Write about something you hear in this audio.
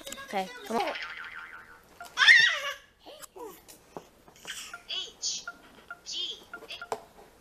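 A toy's electronic voice and melody play from a small speaker.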